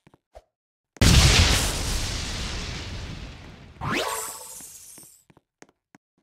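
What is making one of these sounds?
A loud magical whoosh rushes in suddenly and fades away.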